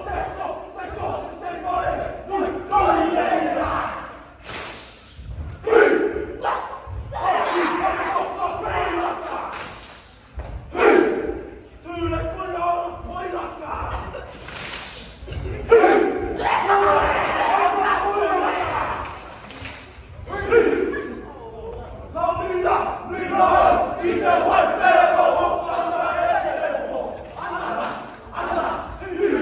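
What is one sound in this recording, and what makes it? A group of young men and women chant and sing loudly in unison in a large echoing hall.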